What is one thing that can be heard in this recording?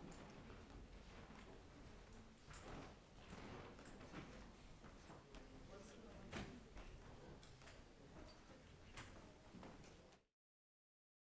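A crowd of people murmurs and chats in a large echoing room.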